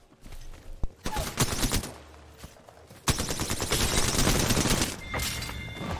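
Video game gunshots fire in rapid bursts.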